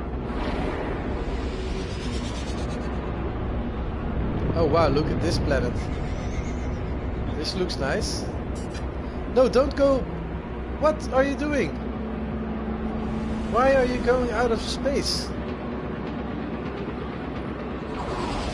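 A spaceship engine hums and roars steadily.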